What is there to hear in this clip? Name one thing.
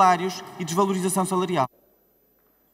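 A man speaks firmly through a microphone.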